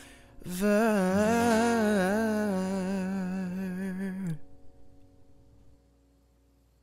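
An acoustic guitar is strummed and rings out.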